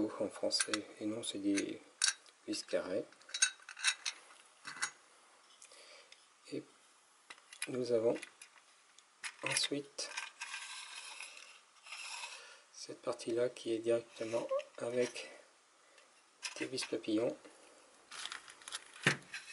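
Metal parts click and knock as they are handled.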